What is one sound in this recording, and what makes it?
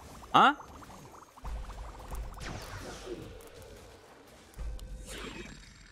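Magical blasts whoosh and chime in a game.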